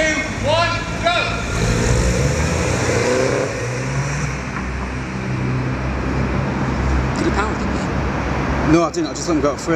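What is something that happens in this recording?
A small car's engine revs as the car pulls away.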